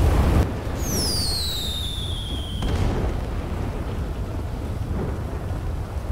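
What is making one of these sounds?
Fireworks pop and crackle in the sky.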